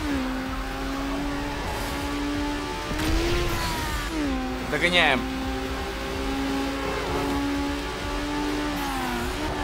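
A racing car engine roars at high revs, shifting gears now and then.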